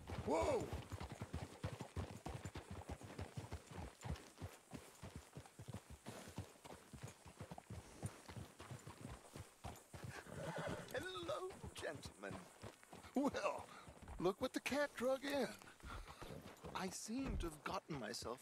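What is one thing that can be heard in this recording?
Horses' hooves clop steadily on a dirt track.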